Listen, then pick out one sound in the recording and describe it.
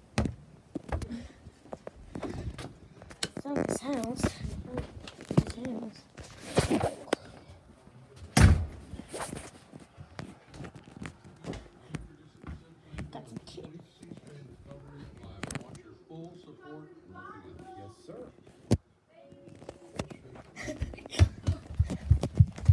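Footsteps thud steadily underfoot.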